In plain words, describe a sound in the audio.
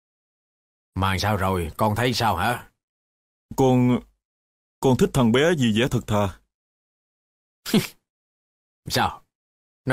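An elderly man speaks with feeling nearby, in short bursts.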